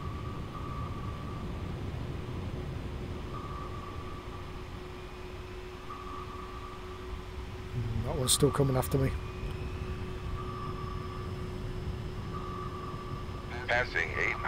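A submarine's engine rumbles low and steady under water.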